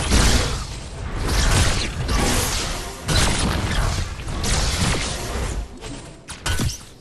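Rapid gunfire and energy blasts crackle and boom.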